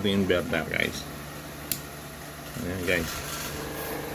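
A switch clicks once.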